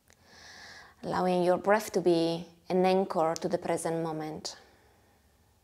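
A young woman sings a held, wavering melody into a close microphone.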